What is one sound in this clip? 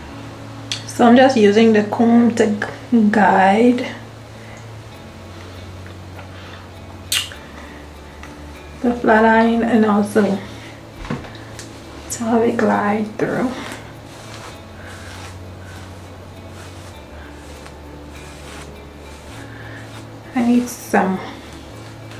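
A young woman talks calmly and close by.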